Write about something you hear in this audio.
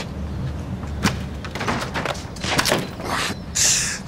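A man knocks on a wooden board.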